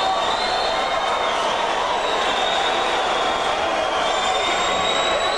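A rock band plays loudly in a large hall.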